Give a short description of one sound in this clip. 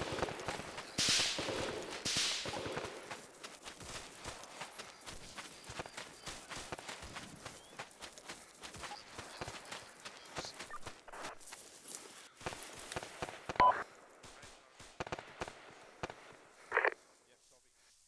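Footsteps crunch quickly over dry grass and dirt.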